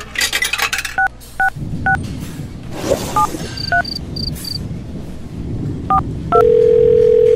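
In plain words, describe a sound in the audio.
Phone keypad buttons beep in short paired tones as a number is dialled.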